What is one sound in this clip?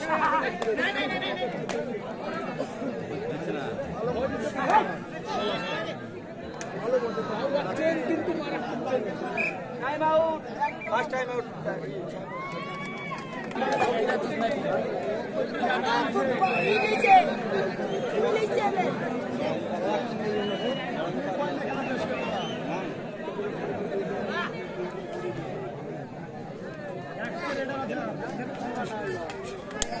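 A large outdoor crowd chatters and cheers.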